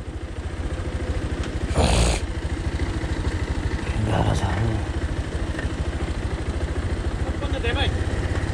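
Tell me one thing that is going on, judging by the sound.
A motorcycle engine idles with a steady, low throb.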